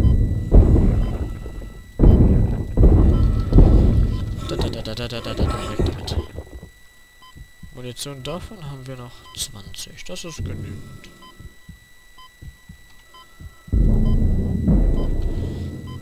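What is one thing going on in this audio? A weapon fires in heavy, booming blasts.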